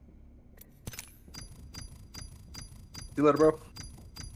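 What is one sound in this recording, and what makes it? Game menu sounds click and chime as a score counts up.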